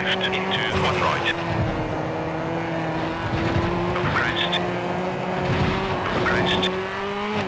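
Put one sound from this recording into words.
A rally car engine drones steadily at high revs.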